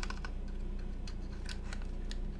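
A keycap snaps off a keyboard with a click.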